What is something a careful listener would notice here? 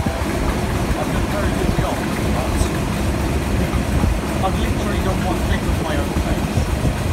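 A diesel locomotive engine rumbles loudly and steadily close by.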